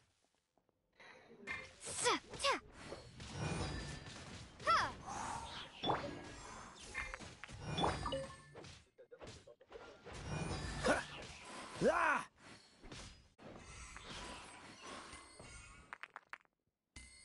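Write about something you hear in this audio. Sword slashes and magical blasts crash and whoosh in quick bursts.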